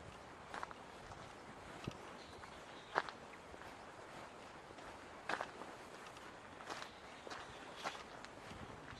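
Footsteps scuff slowly on stone steps.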